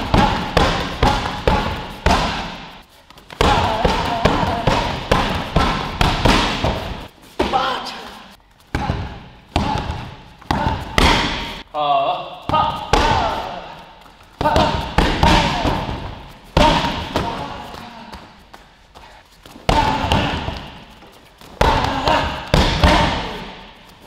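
Kicks and punches thud hard against a heavy punching bag, again and again.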